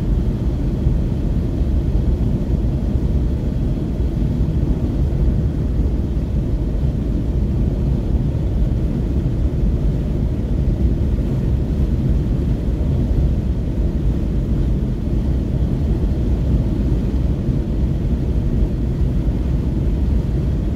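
A car drives at highway speed, with a low road rumble heard from inside.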